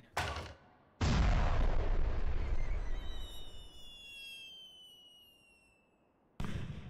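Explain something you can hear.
A large explosion booms and slowly fades.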